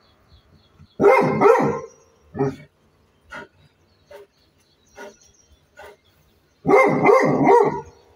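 A dog barks loudly in short bursts.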